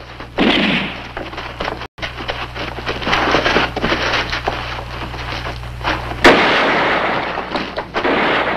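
Rifles fire in sharp, echoing shots.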